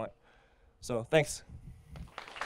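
A man speaks briefly through a microphone in a large hall.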